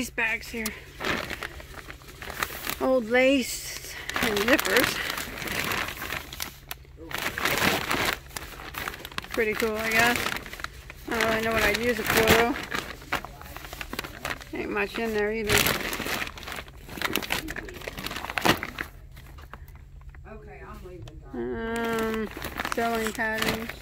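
Plastic bags crinkle and rustle under a hand.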